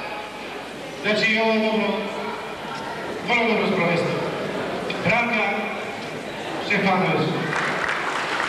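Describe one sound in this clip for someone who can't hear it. A man speaks into a microphone over a loudspeaker.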